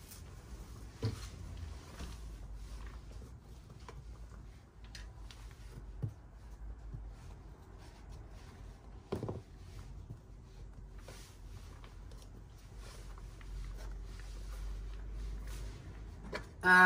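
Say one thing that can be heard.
Small plastic pots knock and rustle as they are handled.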